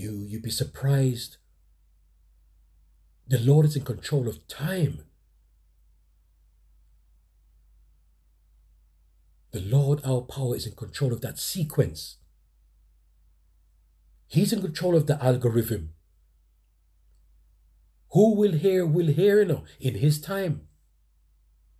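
Men talk in turns, close by, with pauses between lines.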